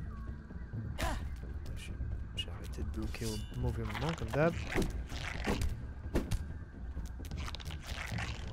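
A weapon thuds against a giant ant's shell.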